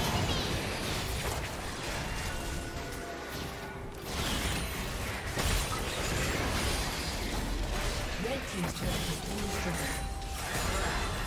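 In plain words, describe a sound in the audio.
Magic blasts and crackling spell effects burst in a video game battle.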